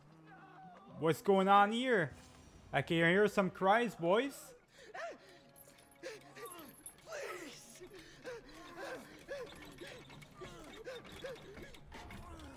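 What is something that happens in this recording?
A man screams in pain and pleads desperately.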